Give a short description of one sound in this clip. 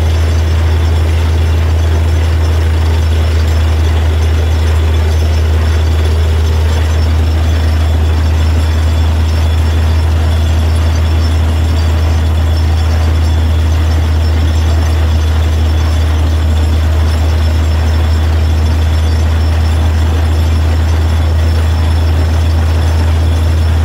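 A drilling rig's engine drones loudly and steadily.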